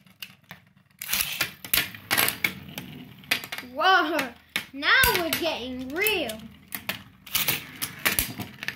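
Spinning tops clack and knock against each other.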